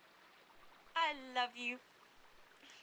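A woman cries out in a high voice nearby.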